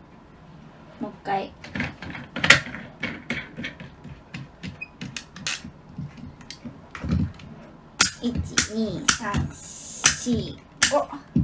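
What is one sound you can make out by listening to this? Plastic parts of a toy click and rattle as they are handled.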